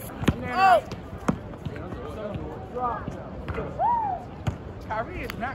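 A basketball bounces on hard pavement.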